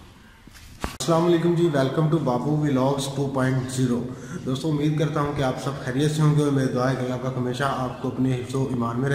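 A young man talks calmly close to a microphone.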